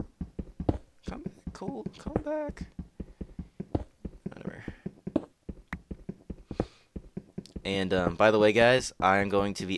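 A pickaxe chips rapidly at stone with quick, dry knocks.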